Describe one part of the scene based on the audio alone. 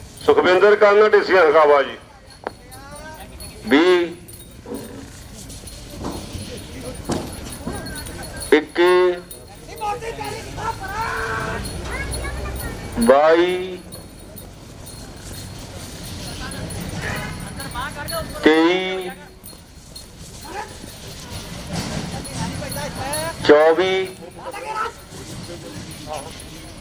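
Bulls' hooves thud on dirt as they race around a ring.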